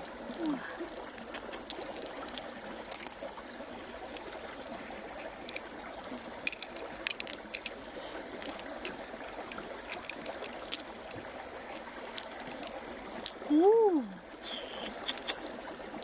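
Small beads click and clack together in a pair of hands.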